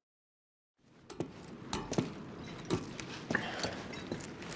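Footsteps clang on a metal ladder.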